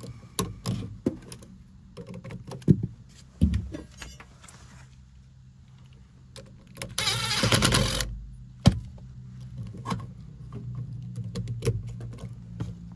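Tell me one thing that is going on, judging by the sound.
Plastic and metal parts click and tap as they are handled.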